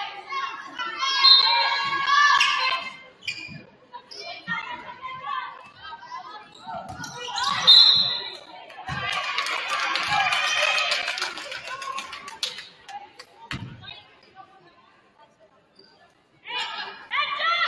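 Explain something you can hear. Young women shout and call out across a large echoing gym.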